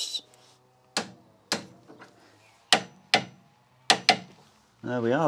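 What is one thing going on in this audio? A metal tool knocks sharply against metal.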